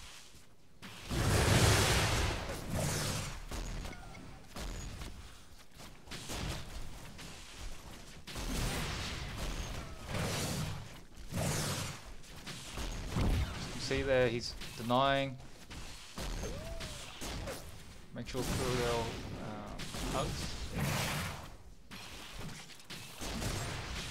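Rapid gunfire rattles in bursts.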